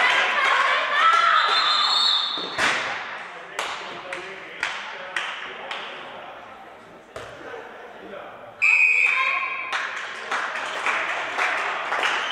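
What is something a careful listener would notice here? Young women shout and cheer in a large echoing hall.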